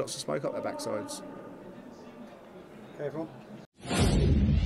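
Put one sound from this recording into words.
A middle-aged man speaks calmly into microphones.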